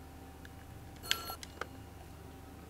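A telephone handset is picked up with a clatter.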